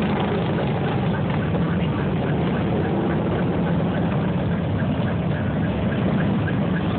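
Many motorcycle engines rumble and idle loudly nearby.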